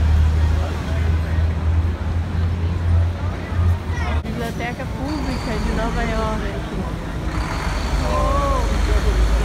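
Men and women chatter nearby in a crowd outdoors.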